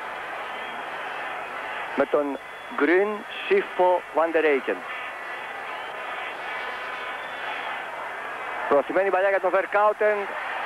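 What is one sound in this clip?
A large crowd murmurs and roars in a stadium.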